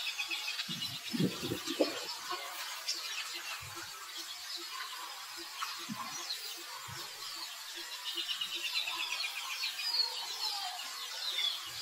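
A newborn monkey squeaks faintly and close by.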